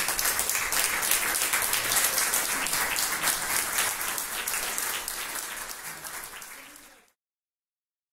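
An audience applauds loudly, then fades out.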